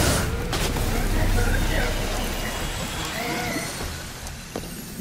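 A magical blast whooshes and crackles.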